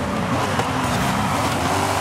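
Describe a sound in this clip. Tyres screech as a race car slides through a corner.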